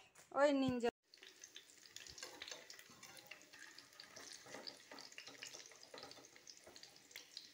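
Oil sizzles and crackles in a frying pan.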